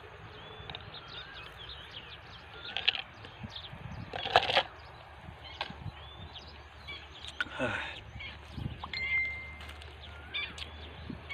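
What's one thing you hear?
A fishing net rustles and its weights clink softly as it is gathered up by hand.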